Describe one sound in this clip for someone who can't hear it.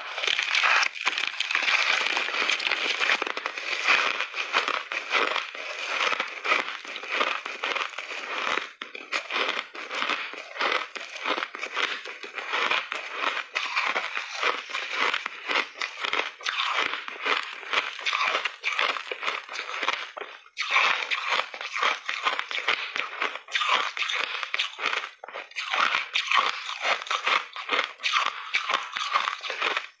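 A woman bites into chunks of frozen ice, crunching them close to the microphone.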